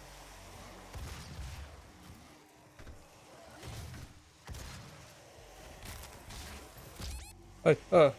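Gunshots blast with heavy booms.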